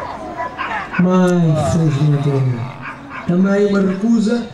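A man calls out commands to a dog loudly.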